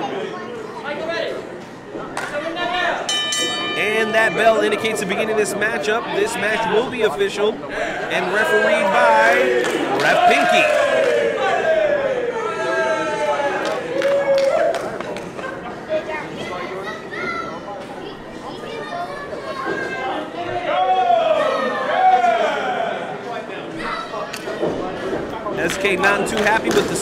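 A small crowd shouts and cheers in a large hall.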